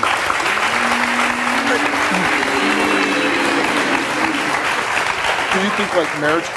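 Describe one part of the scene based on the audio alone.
An audience applauds and cheers loudly.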